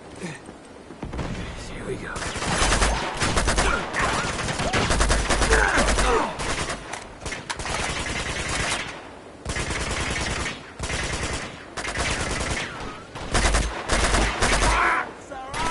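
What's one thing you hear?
Rifle fire crackles in rapid bursts.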